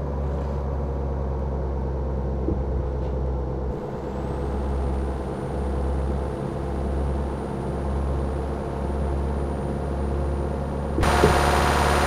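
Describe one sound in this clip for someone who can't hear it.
A car engine hums steadily, muffled as if heard from inside.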